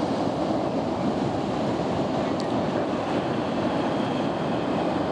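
Ocean waves break and wash steadily onto a beach.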